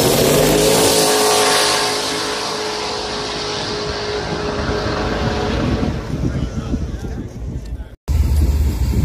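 A car engine roars loudly as the car races away into the distance.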